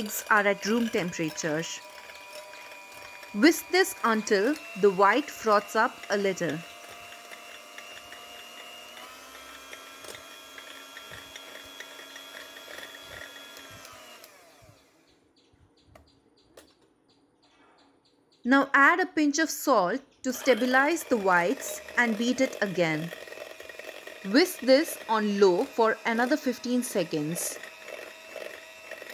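An electric hand mixer whirs steadily, stops, then starts again.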